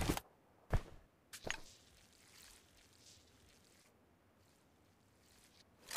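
A game character tears open and applies bandages with short rustling sounds.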